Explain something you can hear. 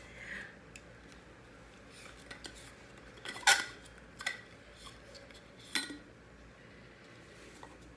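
A plastic lid clicks and twists on a bottle.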